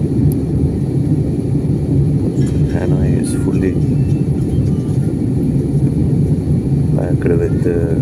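Jet engines roar steadily, heard from inside an airplane in flight.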